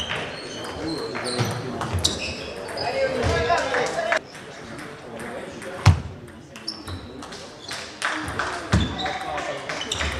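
Ping-pong balls click sharply against paddles and tables, echoing in a large hall.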